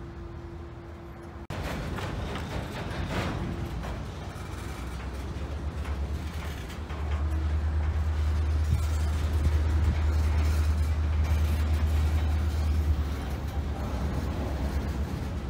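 Train wheels clack and squeal over the rails.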